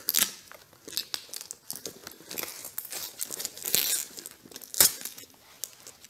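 Tape peels and rips off a cardboard box in short, crackling tugs.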